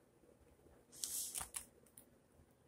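A hand rustles against a plastic page sleeve.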